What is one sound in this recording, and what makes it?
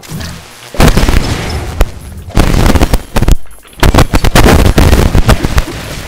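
A video game explosion bursts.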